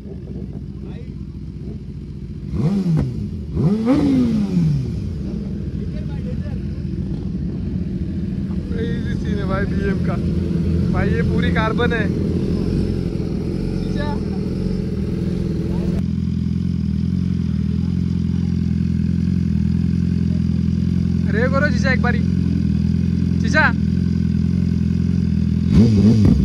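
A sport motorcycle engine idles with a deep, steady rumble.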